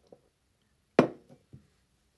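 A mug knocks down on a hard surface.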